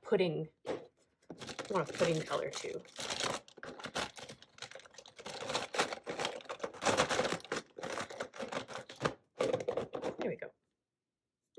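Plastic markers rattle and clatter in a box.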